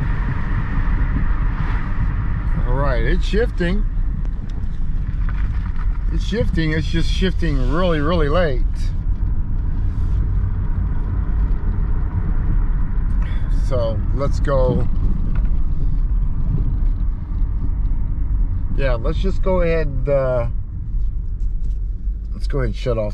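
A car engine hums and tyres rumble on the road, heard from inside the car.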